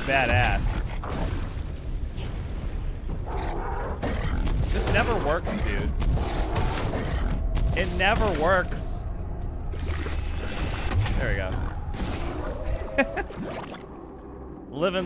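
Video game blasts and magical impacts crackle and boom.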